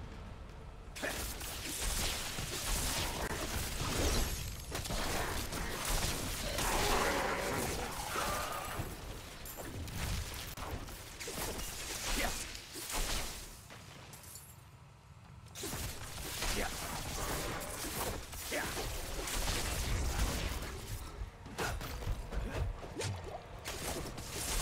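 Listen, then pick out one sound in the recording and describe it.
Blows thud and clang in quick succession.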